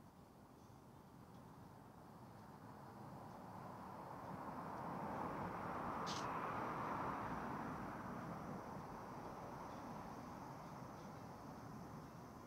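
Traffic passes by on a nearby road, swelling and then easing off.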